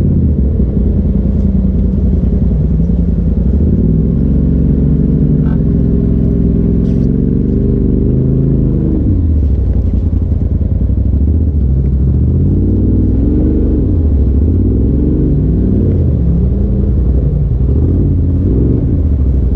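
An off-road vehicle's engine rumbles loudly up close, revving up and down.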